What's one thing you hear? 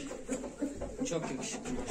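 A chicken flaps its wings.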